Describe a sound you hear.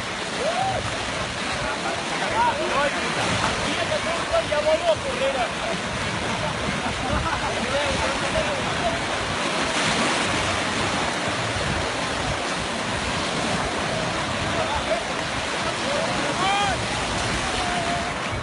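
Water splashes as people wade through the shallows.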